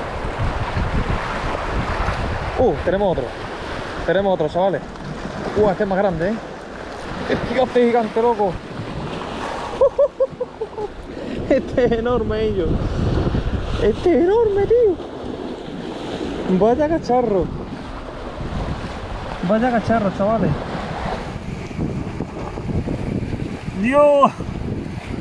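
Waves splash against rocks nearby.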